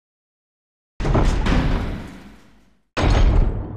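A heavy metal door opens.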